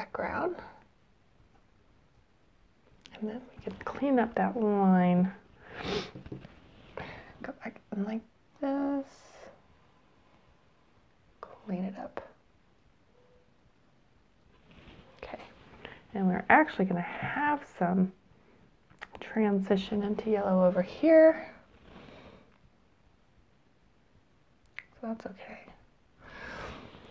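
A woman talks calmly into a clip-on microphone, close by.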